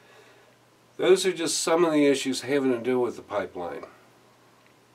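A middle-aged man speaks close to a microphone, calmly and with emphasis.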